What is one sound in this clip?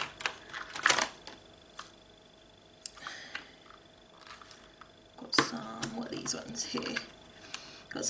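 Plastic containers rattle and click as hands handle them.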